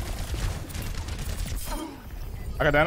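Rapid gunshots fire in bursts.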